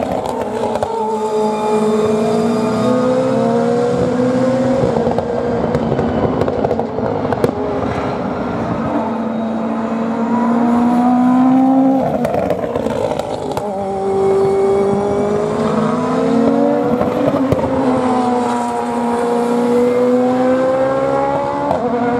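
GT racing cars accelerate away through a bend, with engines climbing in pitch and shifting up.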